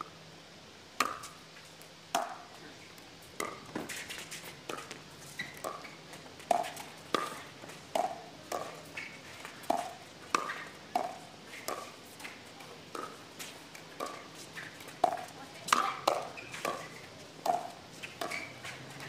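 Paddles hit a plastic ball back and forth in quick sharp pops.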